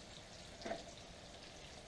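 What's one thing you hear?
A spoon scrapes against a metal pot.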